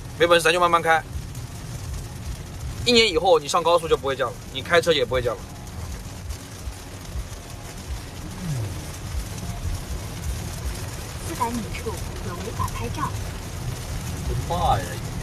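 A car engine hums with tyres rumbling on a wet road.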